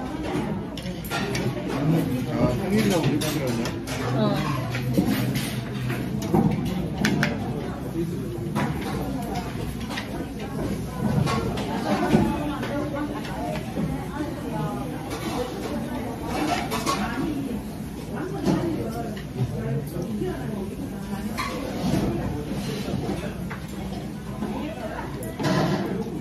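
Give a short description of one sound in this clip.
Chopsticks clink against bowls and plates.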